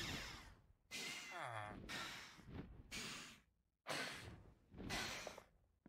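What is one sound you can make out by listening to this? A creature screeches shrilly overhead.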